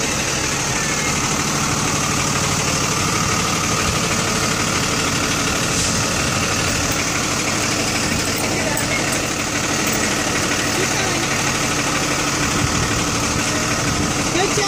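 A school bus engine idles with a steady, low diesel rumble close by.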